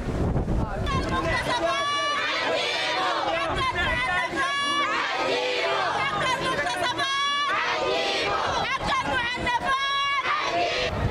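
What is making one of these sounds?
A crowd of women chant and ululate loudly while marching.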